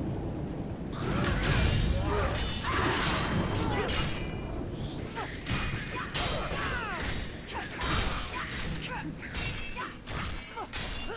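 Spell blasts crackle and burst.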